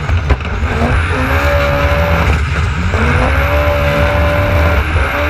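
A jet ski engine roars and revs up and down.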